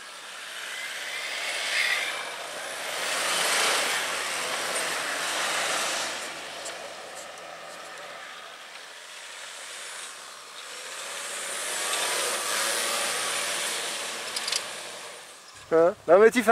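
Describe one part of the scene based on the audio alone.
A 4x4 drives through deep snow.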